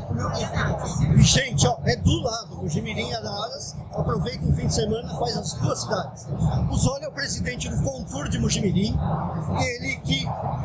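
A middle-aged man speaks with animation, close by.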